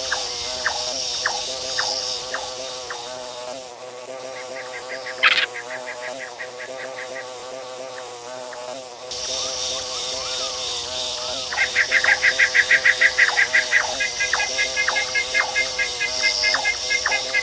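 A bee's wings buzz steadily as it flies.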